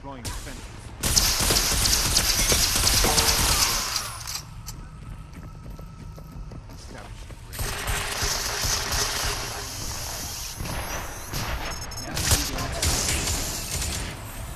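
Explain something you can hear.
Guns fire in rapid bursts with sharp crackling blasts.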